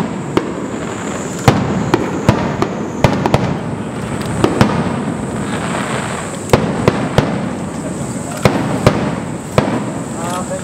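Fireworks boom and crackle in the distance, echoing outdoors.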